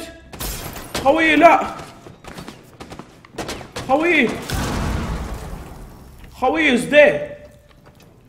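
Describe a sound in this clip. A young man shouts excitedly into a microphone.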